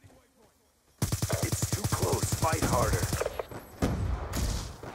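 A rifle fires in rapid bursts, loud and close.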